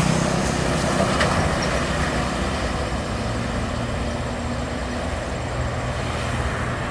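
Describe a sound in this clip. A bus engine rumbles as the bus approaches along the road.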